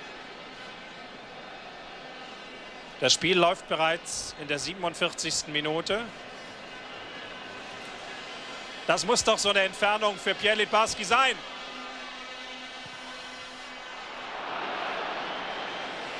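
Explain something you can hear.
A distant stadium crowd murmurs and then rises to a roar.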